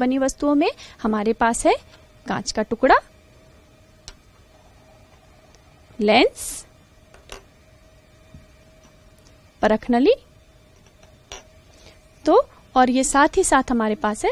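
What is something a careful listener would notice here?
A young woman speaks clearly and calmly into a close microphone, in short phrases with pauses.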